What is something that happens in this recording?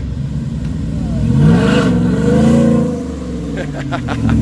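A truck engine revs up and down close by.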